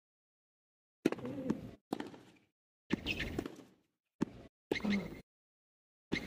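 Rackets strike a tennis ball back and forth.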